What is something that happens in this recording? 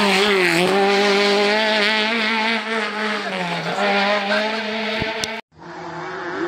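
A rally car's engine roars loudly as the car speeds away through a bend.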